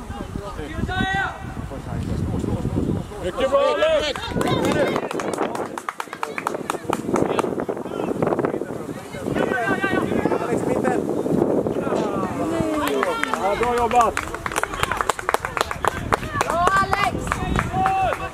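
Young players shout to each other across an open field.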